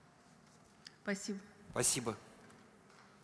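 A man speaks briefly through a microphone in a large hall.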